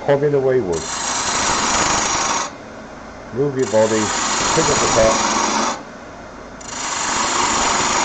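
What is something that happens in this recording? A gouge scrapes and hisses against spinning wood in bursts.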